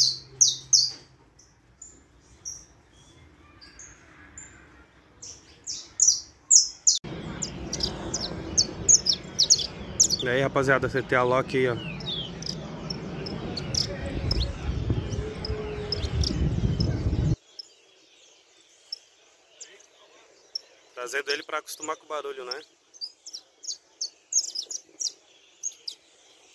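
A saffron finch sings in high, quick chirping phrases.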